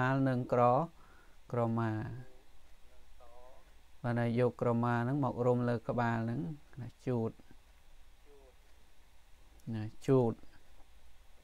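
An elderly man speaks slowly and clearly into a microphone, reading out.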